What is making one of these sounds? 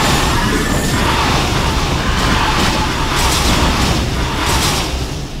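Guns fire in rapid bursts with sharp zapping blasts.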